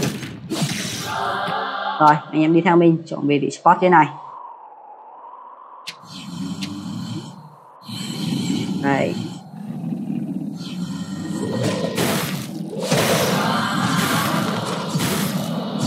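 Magic blasts and crashes burst in a game fight.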